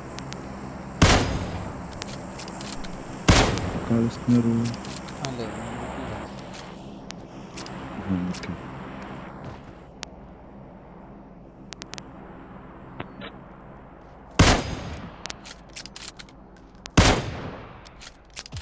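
A rifle fires single loud shots that echo briefly.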